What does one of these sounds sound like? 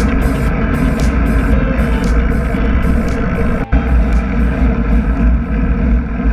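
A bicycle freewheel ticks, slowing down and stopping.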